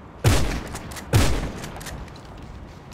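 Two loud gunshots ring out with a short echo.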